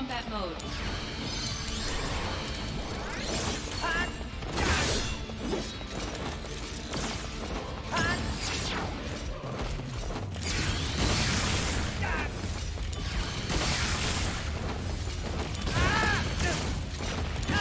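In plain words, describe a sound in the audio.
Swords clash and magic blasts crackle in a video game battle.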